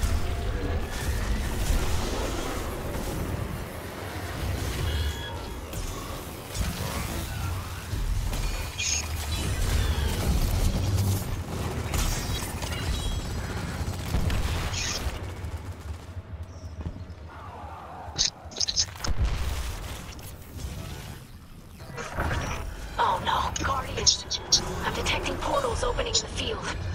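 Deep game sound effects rumble and boom.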